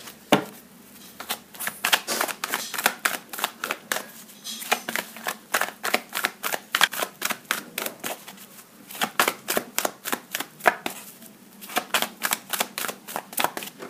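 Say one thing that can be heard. A deck of cards is shuffled with quick, repeated flicking snaps.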